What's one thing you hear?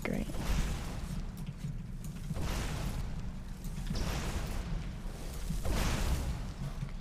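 A burst of fire whooshes and crackles.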